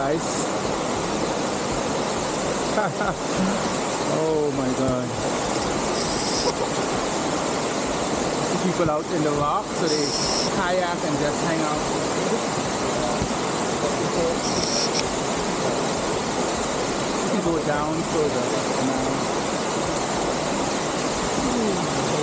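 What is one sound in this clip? Water rushes steadily over rocks nearby.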